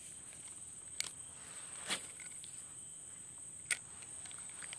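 A fishing rod and reel knock and click as they are handled.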